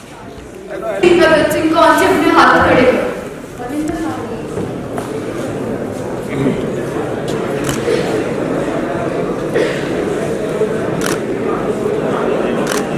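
A young woman sings into a microphone, heard through loudspeakers in an echoing hall.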